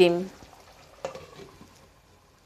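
A glass lid clinks down onto a pan.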